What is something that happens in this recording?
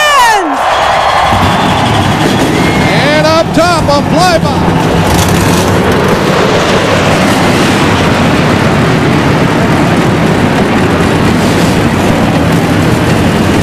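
Jet planes roar overhead.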